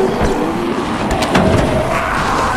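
Hands grab hold of a metal van door with a clank.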